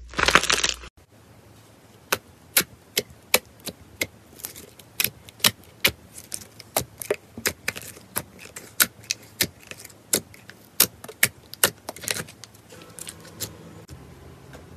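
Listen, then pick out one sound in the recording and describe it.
Clear slime pops and clicks sharply as fingers press into it.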